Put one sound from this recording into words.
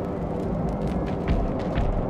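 A flame crackles and hisses close by.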